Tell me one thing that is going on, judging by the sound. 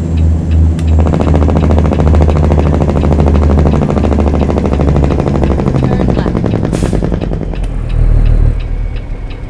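A truck's engine brake chatters as the truck slows down.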